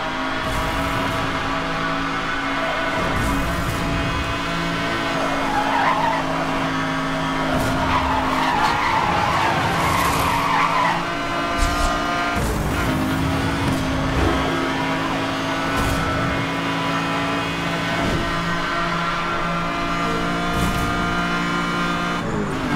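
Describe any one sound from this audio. A racing car engine roars at high speed, its pitch rising and falling with gear changes.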